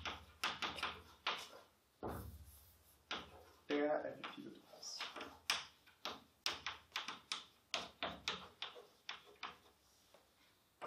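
Chalk taps and scratches quickly on a board.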